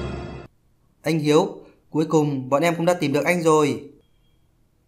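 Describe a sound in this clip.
A young woman speaks brightly and with animation.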